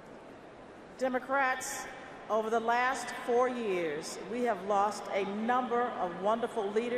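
A middle-aged woman speaks steadily into a microphone, heard through loudspeakers in a large echoing hall.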